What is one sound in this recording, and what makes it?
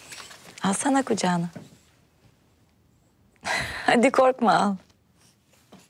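A young woman speaks warmly, close by.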